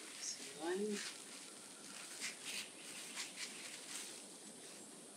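Hands rustle and scrape in dry soil, close by.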